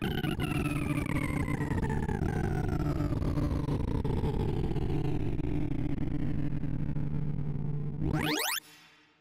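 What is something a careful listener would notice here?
Rapid electronic beeps chatter in a dense buzzing stream, slowly falling in pitch.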